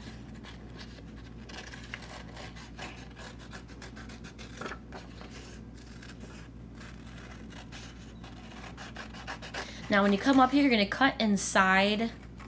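Stiff paper rustles and crinkles as it is handled up close.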